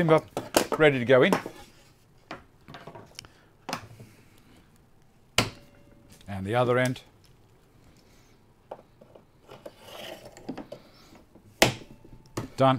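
Wooden boards knock sharply against a workbench.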